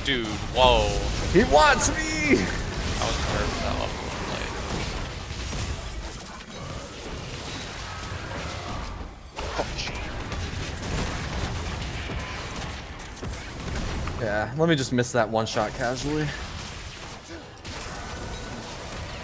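Video game spells and weapon hits clash and crackle throughout a battle.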